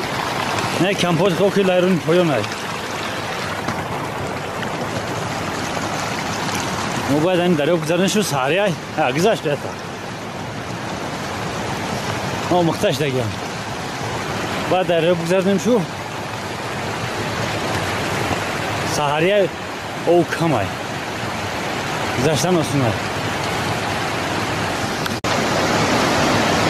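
Muddy floodwater rushes loudly over rocks.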